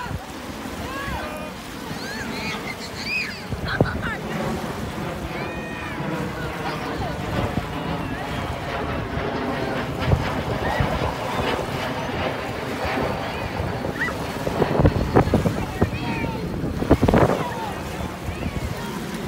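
Young people shout and call out playfully in the distance.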